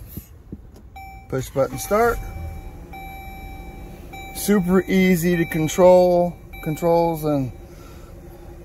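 A car's dashboard chime beeps steadily.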